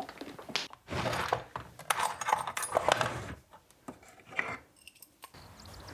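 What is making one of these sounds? A screwdriver is lifted out of a wooden rack with a light knock.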